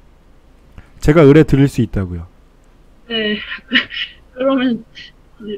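A middle-aged man speaks calmly into a microphone over an online call.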